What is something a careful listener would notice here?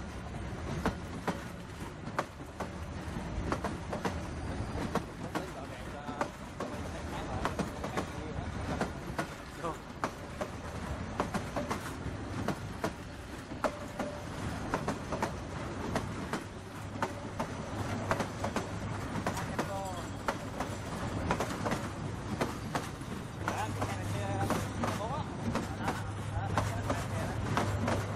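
A train rolls past close by, with its wheels clattering over the rail joints.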